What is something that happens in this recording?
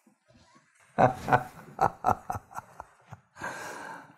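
A man laughs warmly, close by.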